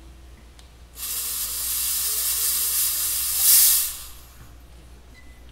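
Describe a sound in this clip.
A smoke machine hisses loudly.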